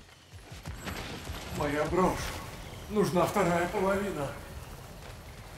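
A man speaks calmly in an echoing voice, close by.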